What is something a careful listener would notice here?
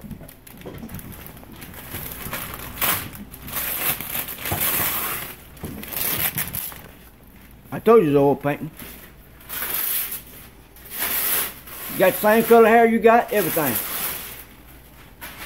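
Wrapping paper crinkles and tears.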